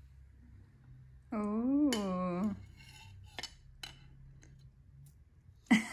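A knife taps and scrapes against a plate.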